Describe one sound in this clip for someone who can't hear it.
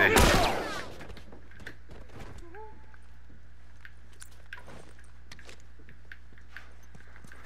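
Footsteps crunch over debris and broken glass.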